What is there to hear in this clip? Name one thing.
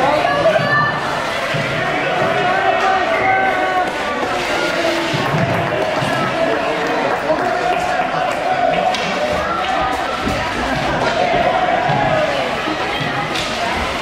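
Children shout and call out across a large echoing rink.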